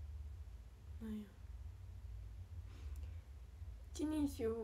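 A young woman speaks softly in short bursts, close by.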